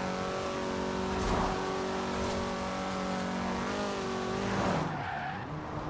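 A car engine roars at high, steady revs.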